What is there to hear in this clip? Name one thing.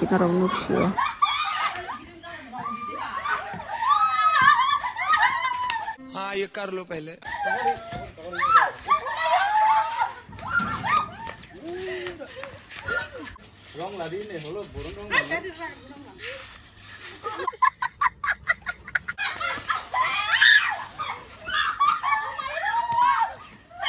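Young women laugh and shriek playfully outdoors.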